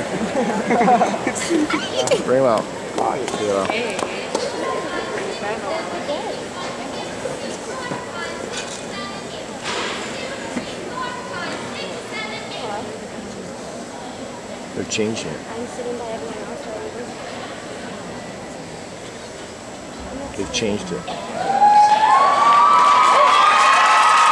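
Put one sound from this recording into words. A large crowd murmurs and chatters in a big echoing hall.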